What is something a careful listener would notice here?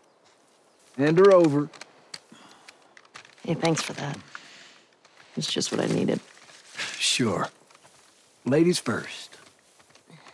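A man speaks calmly and softly.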